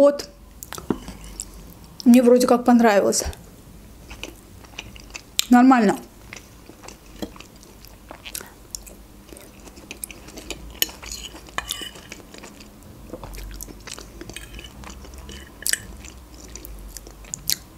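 A fork scrapes and clinks on a plate.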